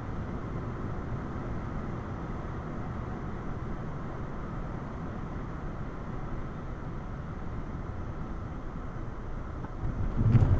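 A car engine hums steadily with road noise from inside the cabin.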